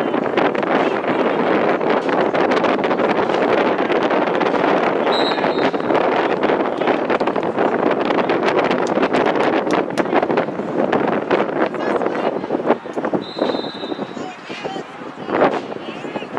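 Players shout and call to each other across an open field.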